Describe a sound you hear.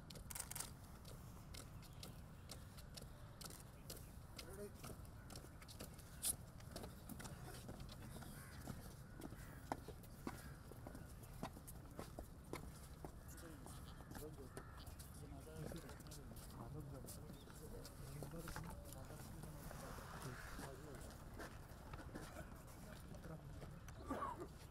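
Footsteps shuffle slowly on pavement.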